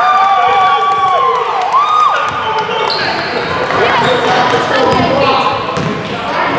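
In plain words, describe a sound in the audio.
Sneakers squeak sharply on a wooden floor in an echoing gym.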